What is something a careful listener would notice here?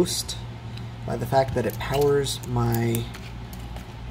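A small plug clicks into a socket.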